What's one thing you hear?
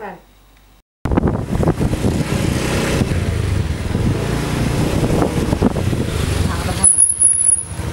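A motorcycle engine rumbles as it rides along.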